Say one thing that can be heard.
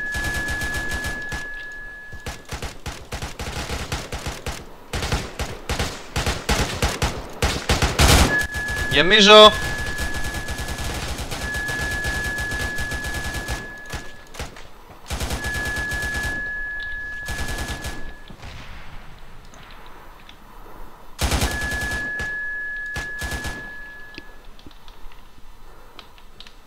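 Rifles fire in rapid bursts of gunshots outdoors.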